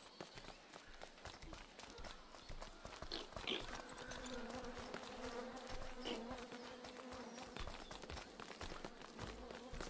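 Quick light footsteps patter steadily as a small figure walks.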